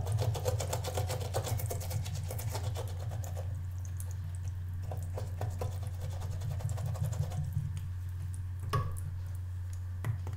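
Water trickles from a tap into a sink.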